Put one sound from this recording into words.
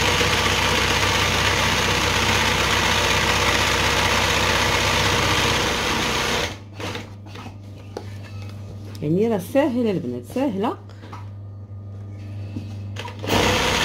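A sewing machine runs, stitching embroidery through fabric.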